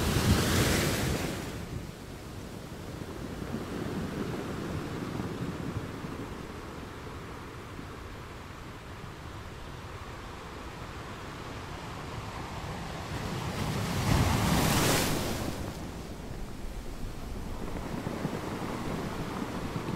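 Ocean waves crash and wash steadily over rocks.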